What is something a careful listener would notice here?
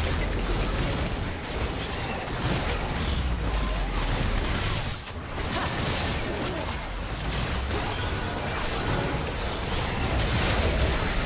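Magic blasts and impacts crackle and boom in a fast, busy clash.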